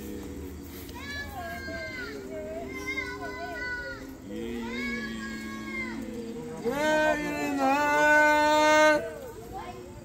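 A voice sings out loudly close by, in rising and falling notes.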